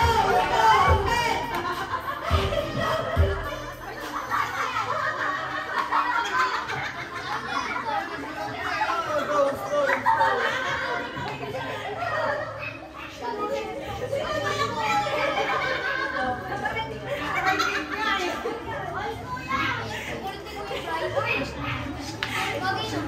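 A crowd of men and women chatters loudly outdoors.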